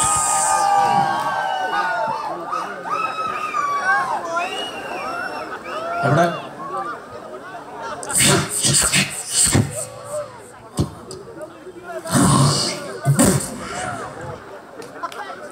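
Several men sing together through loudspeakers on a stage.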